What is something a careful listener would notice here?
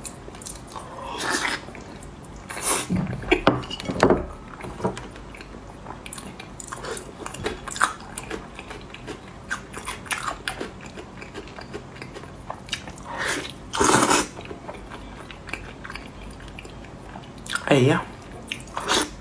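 A young woman slurps and sucks on soft meat, close up.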